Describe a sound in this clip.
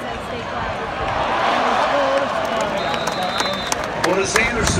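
A large crowd cheers louder.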